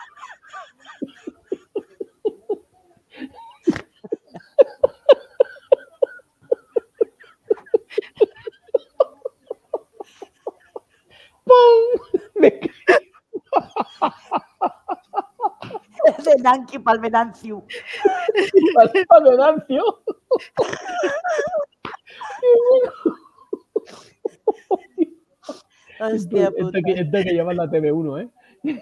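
A man laughs over an online call.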